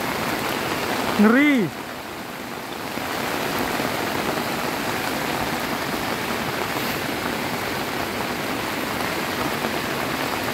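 Floodwater rushes and churns loudly in a steady roar.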